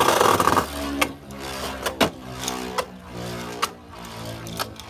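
A spinning top clacks against the rim of a plastic arena.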